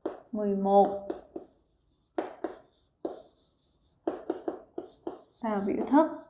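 A young woman speaks clearly into a nearby microphone.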